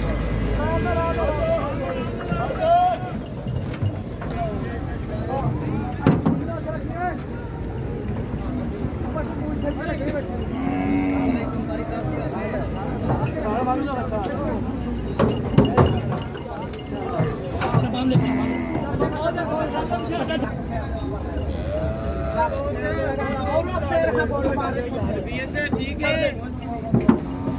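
Several men shout and call out.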